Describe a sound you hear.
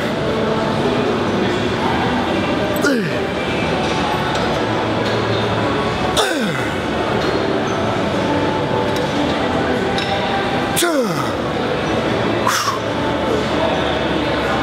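Weight plates on a cable machine clank with each pull.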